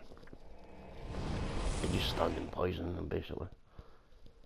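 A low rushing whoosh swells and then fades away.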